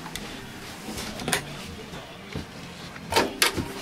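A cabinet door clicks and knocks as it is handled.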